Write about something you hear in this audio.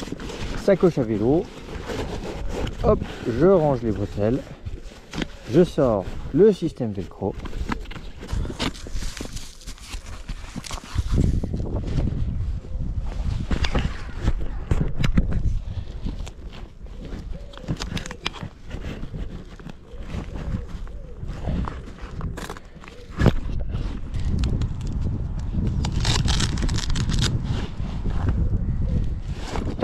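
Nylon straps rustle and scrape as they are handled.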